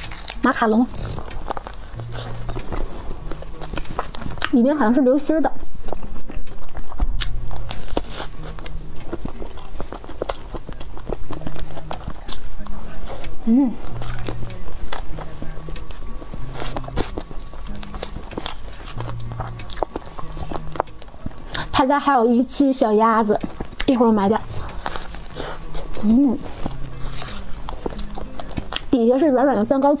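A young woman chews soft chocolate-covered cake close to a microphone.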